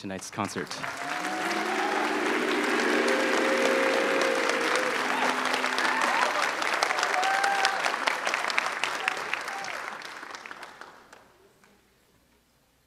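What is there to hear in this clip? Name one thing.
A large crowd applauds loudly in an echoing hall, then the applause fades.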